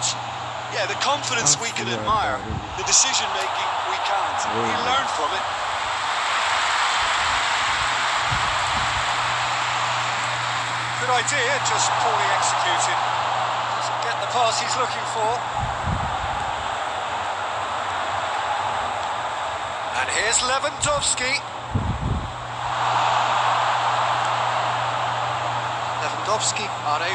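A stadium crowd roars steadily, swelling and easing.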